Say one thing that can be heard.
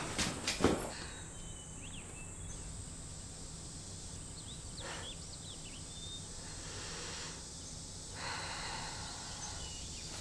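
A young woman speaks softly and calmly.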